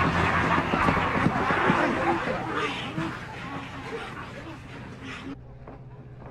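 A crowd murmurs and jostles close by.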